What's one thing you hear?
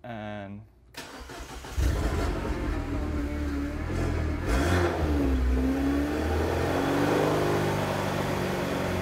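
A car engine starts and idles with a low, steady rumble.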